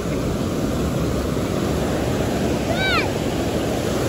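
A boy splashes in the shallow water.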